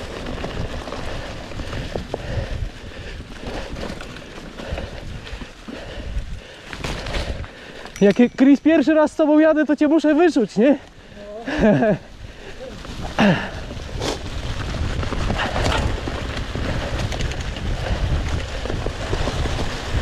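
Bicycle tyres crunch and rustle over dry fallen leaves.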